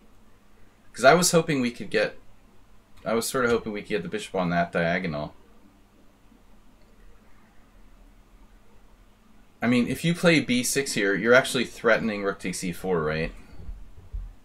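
A man talks calmly and with animation into a close microphone.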